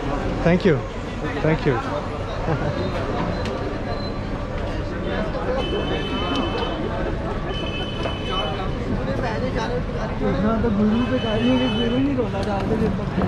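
Many men chat and talk over one another outdoors.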